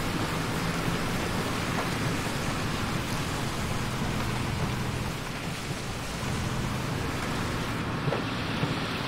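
Tyres roll over rough dirt and sand.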